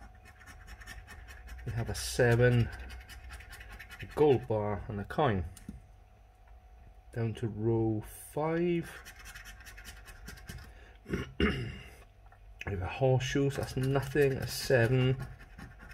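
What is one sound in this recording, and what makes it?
A coin scratches across a scratch card.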